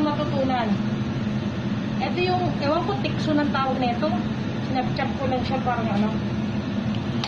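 A woman speaks calmly through a face mask, close by.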